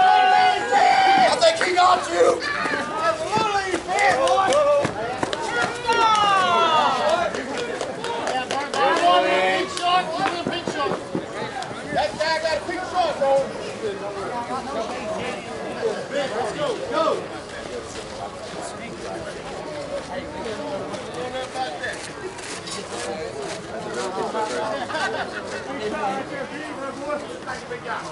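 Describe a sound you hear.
Several adult men and women talk and call out across an open field outdoors.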